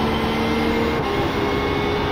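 A racing car engine shifts up a gear with a brief dip in pitch.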